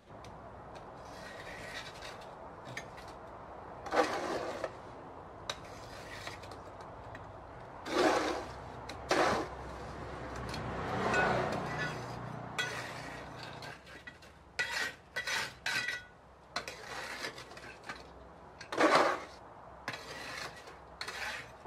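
A hand tool scrapes and taps close by.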